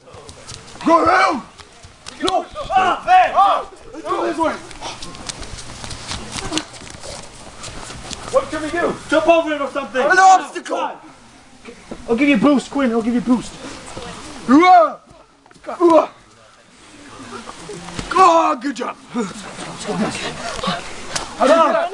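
Teenage boys shout and yell excitedly close by, outdoors.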